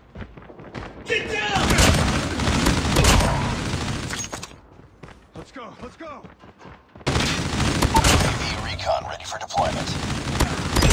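An automatic gun fires rapid bursts of shots.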